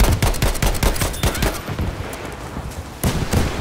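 A rifle bolt clacks as it is worked.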